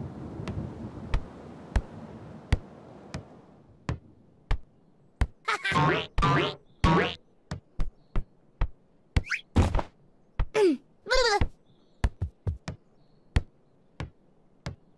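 A ball bounces with regular thumps.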